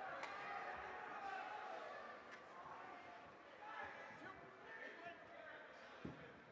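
Young men shout and call out to each other across the rink.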